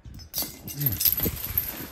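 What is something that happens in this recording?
A metal chain rattles close by.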